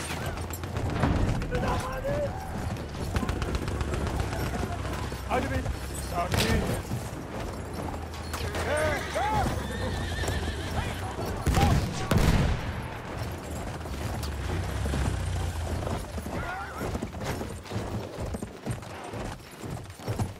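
Horse hooves thud steadily on sand.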